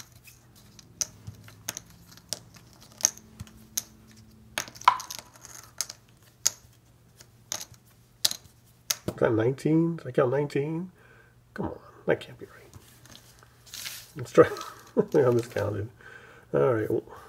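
Wooden tokens clack as they are set down on a table one by one.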